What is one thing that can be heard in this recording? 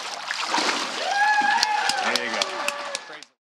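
People cheer and whoop nearby.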